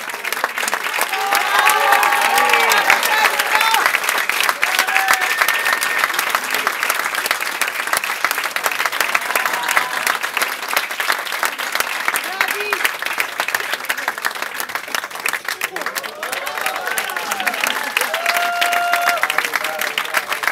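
People cheer and whoop from the audience.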